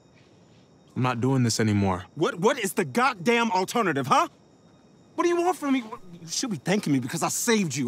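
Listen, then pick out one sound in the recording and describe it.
A young man speaks with animation close by.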